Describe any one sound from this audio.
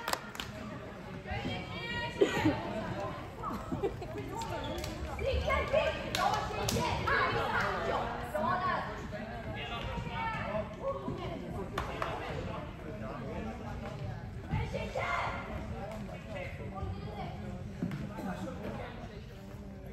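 Young women players call and cheer to each other in an echoing hall.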